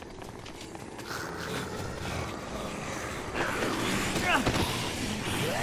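A crowd of zombies groans and moans close by.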